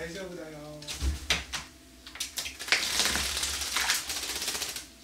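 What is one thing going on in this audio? A bird's wings flap in short bursts.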